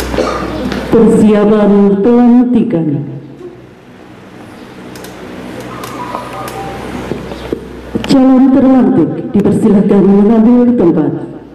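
A woman sings into a microphone, heard through a loudspeaker.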